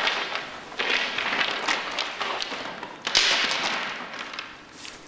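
Sticks knock and scrape against a wooden floor.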